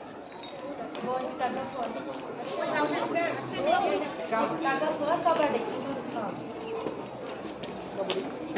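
A man speaks loudly to a group.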